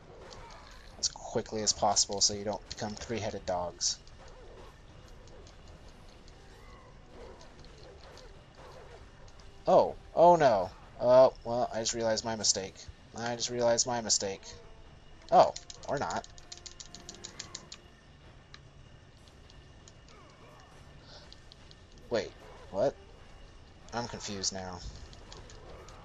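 Chained blades whoosh and slash through the air.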